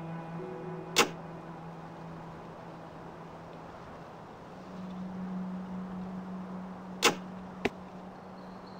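A short game interface click sounds.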